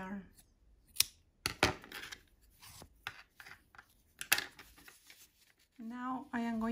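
Yarn and a crochet hook rustle and tap softly as they are handled.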